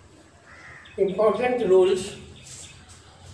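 A middle-aged man speaks clearly and firmly, close by.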